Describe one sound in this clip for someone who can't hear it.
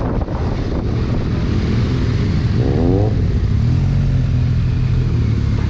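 Wind buffets against the rider.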